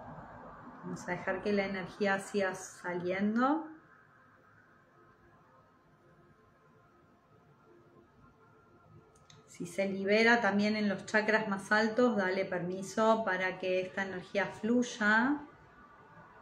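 A middle-aged woman speaks softly and calmly close to a microphone, in short phrases with pauses.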